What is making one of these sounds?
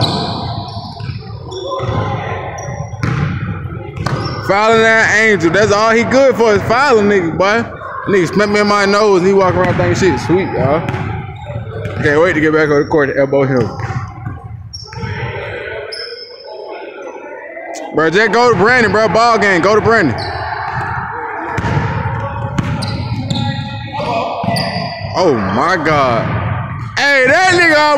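Young men talk and call out in a large echoing gym.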